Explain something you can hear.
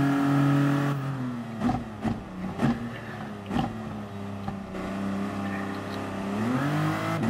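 A racing prototype's engine slows and drops its revs for a corner.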